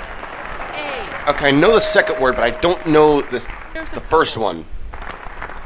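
A woman speaks cheerfully.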